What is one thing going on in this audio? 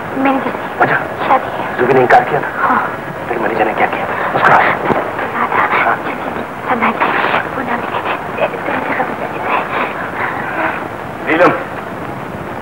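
A man speaks with feeling, close by, with a muffled, hissy tone.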